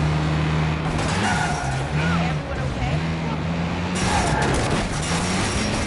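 Tyres screech on the road as a car turns sharply.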